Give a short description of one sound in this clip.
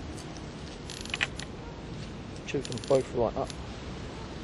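A fishing reel clicks and rattles as a rod is lifted.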